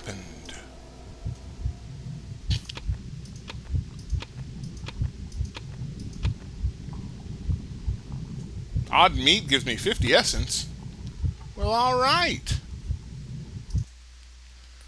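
Liquid squelches and pulses as a syringe slowly fills.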